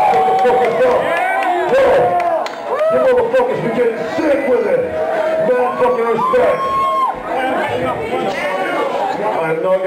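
Loud music plays through speakers.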